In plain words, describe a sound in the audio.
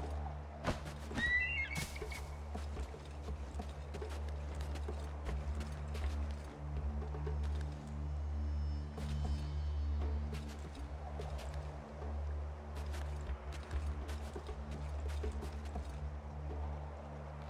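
A game character's hands grip and scrape on wooden boards in quick, repeated taps.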